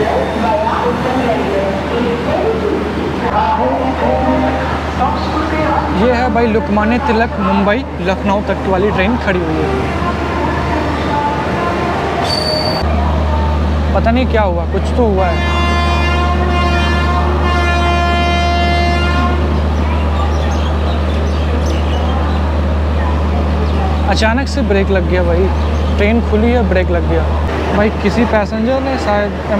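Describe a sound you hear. A train rumbles steadily as it rolls through a station.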